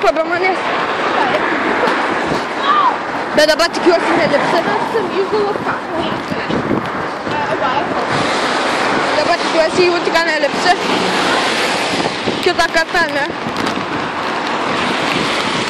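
Traffic hisses by on a wet road.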